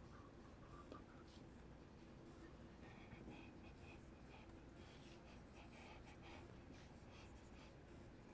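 A marker squeaks and scratches on a whiteboard.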